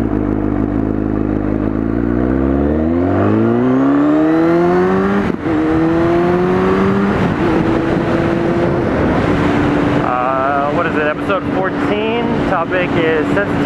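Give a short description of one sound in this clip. A motorcycle engine revs up and shifts through the gears as it accelerates.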